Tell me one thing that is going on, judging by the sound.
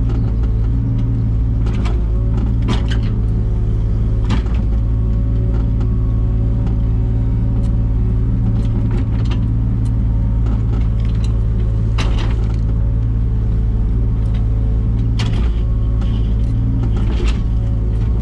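A digger bucket scrapes and knocks against soil and stones.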